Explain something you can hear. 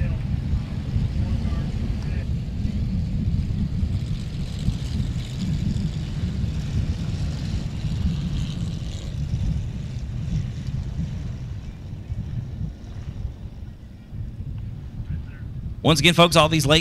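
Race car engines roar and rumble as the cars race.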